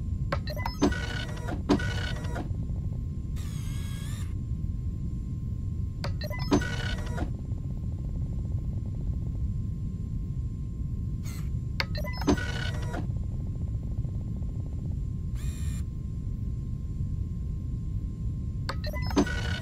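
A button clicks when pressed.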